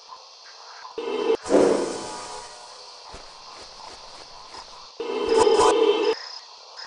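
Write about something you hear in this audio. A magic spell whooshes and shimmers.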